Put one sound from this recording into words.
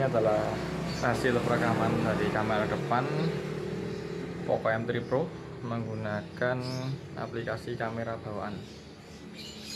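A young man talks calmly, close to the microphone.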